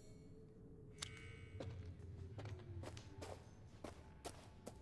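Footsteps scuff slowly across a gritty floor.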